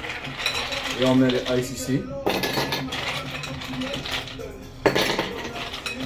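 Ice cubes clatter and rattle in a glass bowl.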